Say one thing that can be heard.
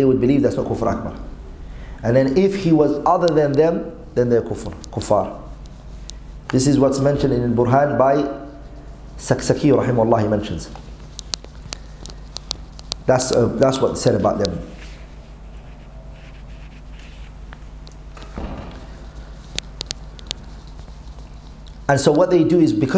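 A man speaks and chants melodically into a microphone, heard in a room with slight echo.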